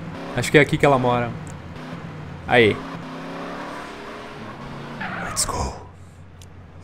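A car engine hums as a car drives along a street.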